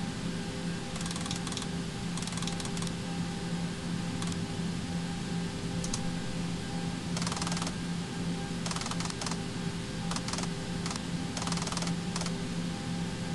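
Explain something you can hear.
A dial clicks rapidly as it is turned.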